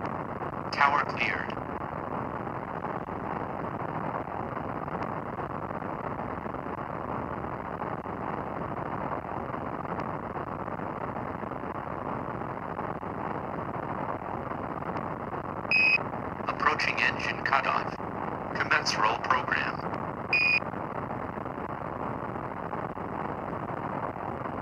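Rocket engines roar steadily.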